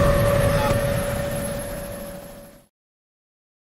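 A helicopter's rotor thuds loudly overhead.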